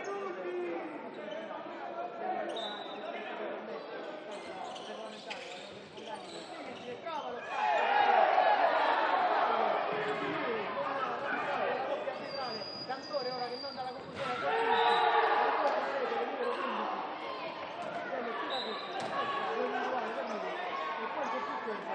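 A ball bounces on a hard court floor.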